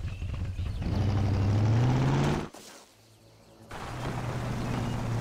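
A car engine revs up as the car pulls away.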